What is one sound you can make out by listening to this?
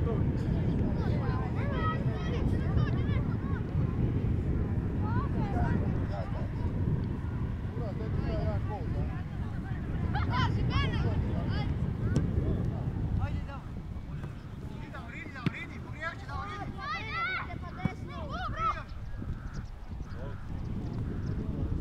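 Young men shout to each other across an open field, heard from a distance.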